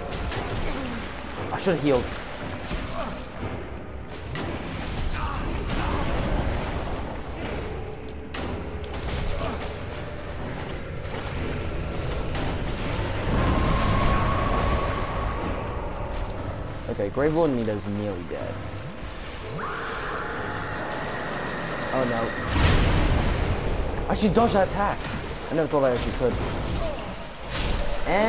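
Heavy metal weapons clash and thud in close combat.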